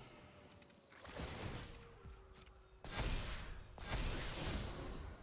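A magical whooshing sound effect swells and shimmers.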